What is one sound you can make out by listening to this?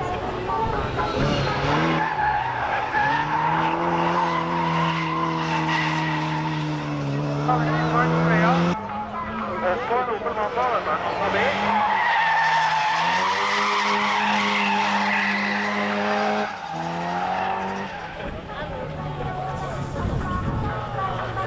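A car engine roars and revs hard.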